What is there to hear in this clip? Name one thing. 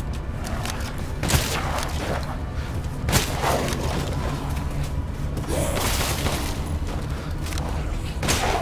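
A creature snarls and growls nearby.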